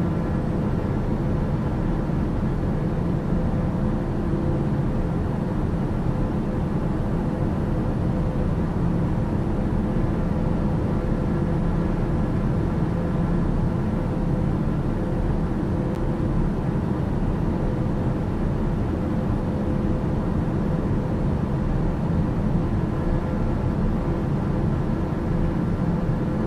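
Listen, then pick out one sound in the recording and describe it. A single-engine turboprop drones steadily in cruise, heard from inside the cockpit.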